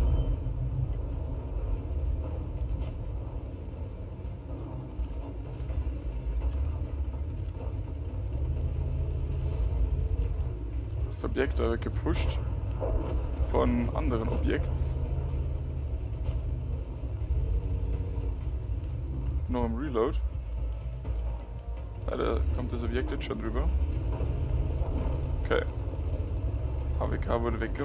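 A tank engine rumbles low and steady as the tank drives.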